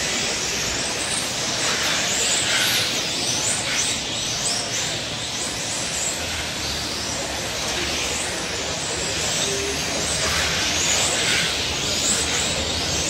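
Small tyres hiss and skid on a smooth surface.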